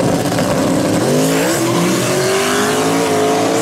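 A turbocharged V8 drag car launches and accelerates hard down the strip.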